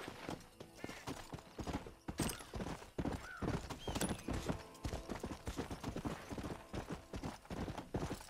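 Hooves gallop on dry ground.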